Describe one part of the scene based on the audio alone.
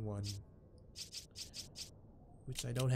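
Short menu blips sound in quick succession.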